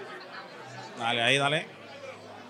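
A man speaks loudly and animatedly close by.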